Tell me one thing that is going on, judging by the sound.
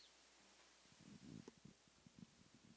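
A microphone is handled with dull thumps.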